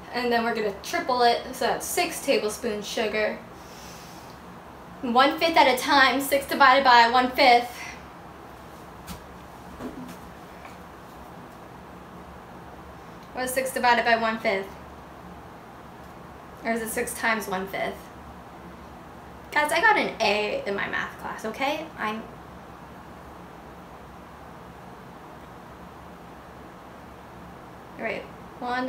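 A young woman talks calmly and close by, in bursts with pauses.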